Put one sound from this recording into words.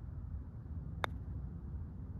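A golf putter taps a ball once.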